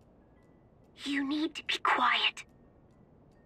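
A voice crackles through a walkie-talkie.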